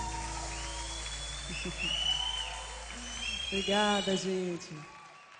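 A woman sings into a microphone over a live band.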